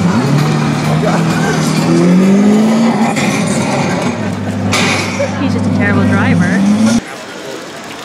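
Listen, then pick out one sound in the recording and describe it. A racing game's engine roars loudly from loudspeakers.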